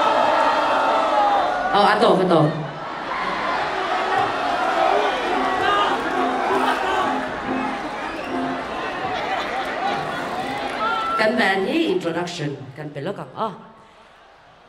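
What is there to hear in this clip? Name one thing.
A woman sings into a microphone over loud outdoor loudspeakers.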